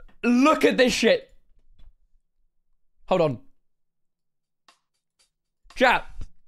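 A young man speaks with animation into a close microphone, in short bursts.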